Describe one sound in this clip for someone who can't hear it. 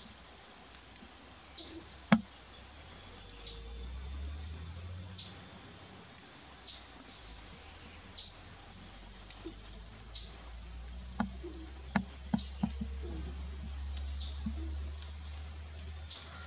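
Doves peck and shuffle through dry leaves, with soft rustling and light taps.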